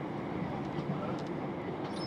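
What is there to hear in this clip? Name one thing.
Another train rushes past close by.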